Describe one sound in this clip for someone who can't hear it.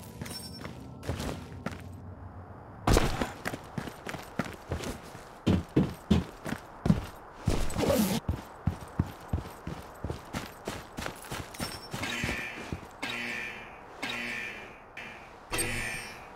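Footsteps run quickly over ground and metal.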